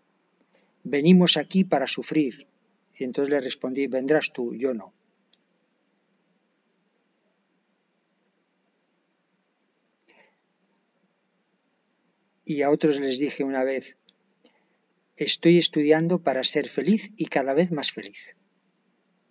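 A middle-aged man speaks calmly and close to a microphone, with long pauses.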